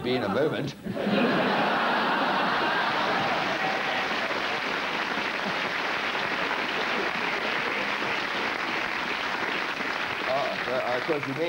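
A studio audience laughs and applauds loudly.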